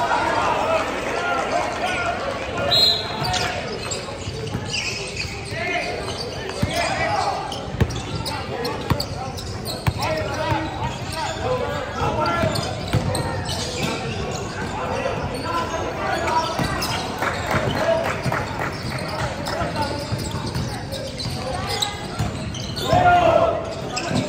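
Sneakers squeak sharply on the wooden floor.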